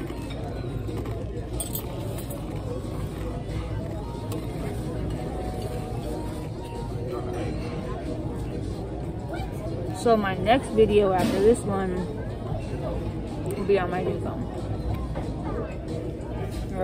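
Crunchy chips crackle as a woman bites and chews.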